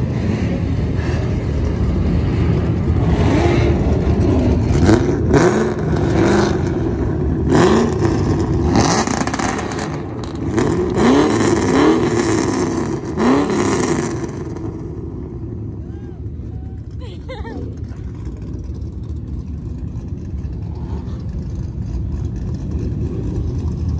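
Car engines rumble and idle nearby.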